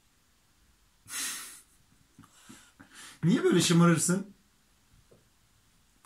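A small child laughs.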